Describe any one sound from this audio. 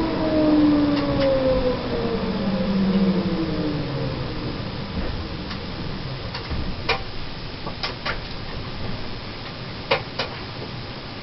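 Tram wheels clack sharply over the rail joints.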